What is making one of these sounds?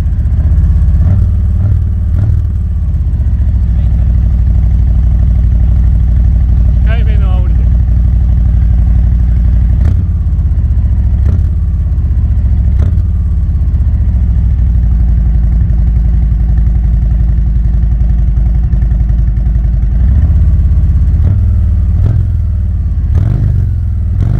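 A motorcycle engine revs briefly and sharply.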